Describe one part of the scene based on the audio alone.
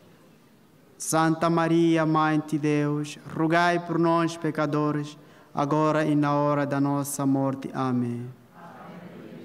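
A man chants in a steady voice through a microphone, echoing in a large hall.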